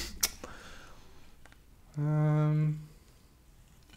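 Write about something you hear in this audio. A man gulps a drink from a can.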